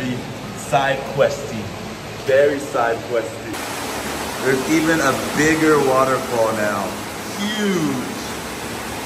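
A young man talks excitedly, close up.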